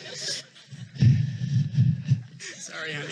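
A crowd laughs softly.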